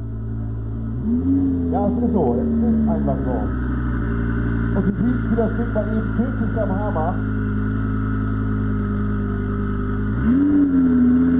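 A sports car engine rumbles deeply as it rolls up and idles.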